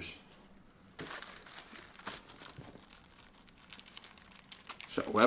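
Paper rustles and crinkles as it is unwrapped.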